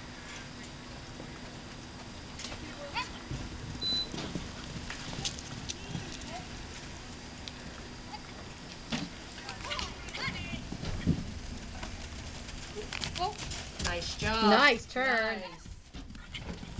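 A horse's hooves thud on soft sand at a canter.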